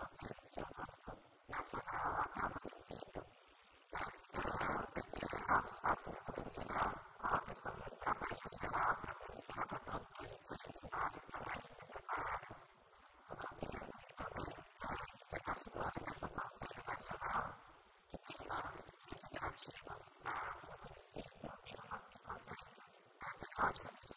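A woman speaks with animation into a microphone, heard through a loudspeaker in an echoing room.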